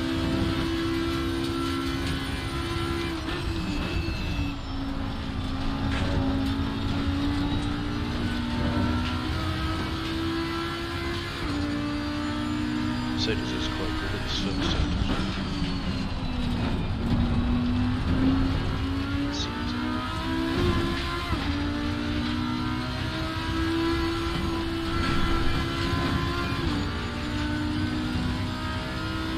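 Tyres squeal through corners.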